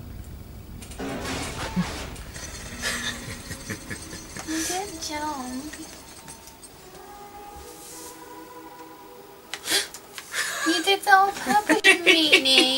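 A young woman talks and laughs close to a microphone.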